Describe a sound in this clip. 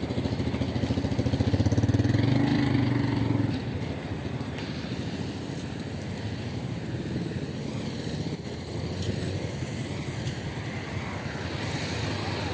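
Car engines hum and tyres roll past on a busy street.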